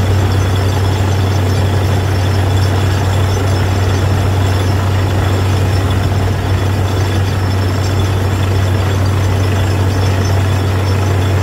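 A drill rotates and grinds into the ground.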